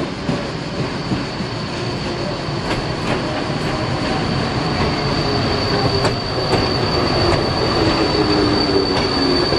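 A train rumbles and clatters as it pulls into a station, growing louder.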